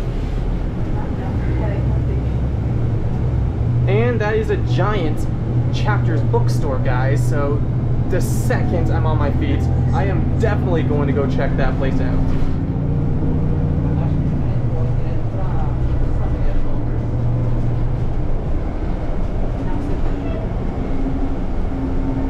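A bus engine rumbles low and steady from inside the bus.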